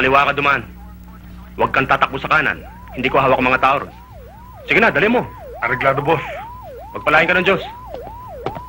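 Two men talk in low, tense voices nearby.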